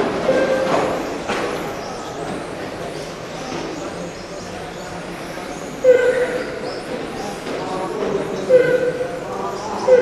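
Small electric motors whine as model cars race around a track in a large echoing hall.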